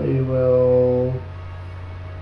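A man speaks briefly and calmly into a close microphone.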